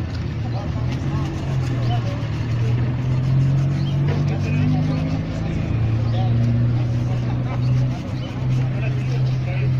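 A brush scrubs over a leather shoe.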